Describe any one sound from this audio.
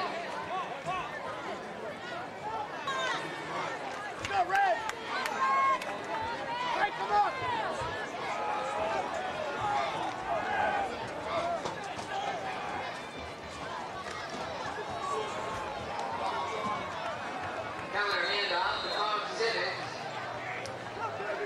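Young men on the sideline shout and call out loudly.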